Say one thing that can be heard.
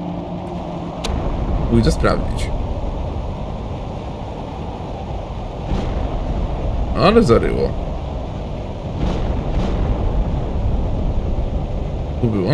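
A strong wind roars outdoors.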